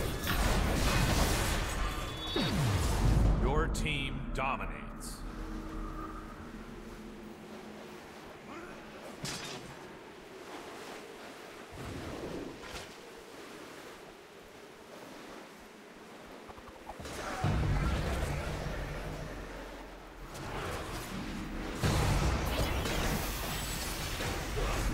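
Fantasy battle sound effects crash and whoosh loudly.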